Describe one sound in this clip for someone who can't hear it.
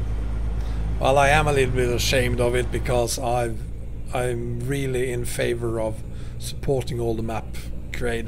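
A man talks calmly and closely into a microphone.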